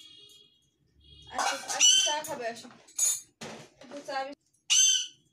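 A parrot chatters and mimics speech.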